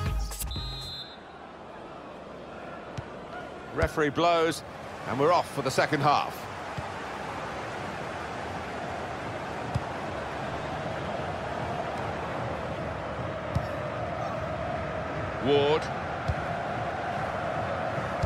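A stadium crowd murmurs and roars.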